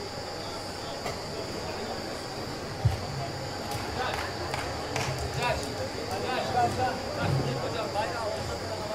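A crowd murmurs and calls out in a large echoing arena.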